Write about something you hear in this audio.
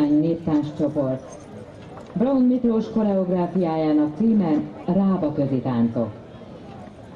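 A woman speaks through a loudspeaker outdoors, announcing with animation.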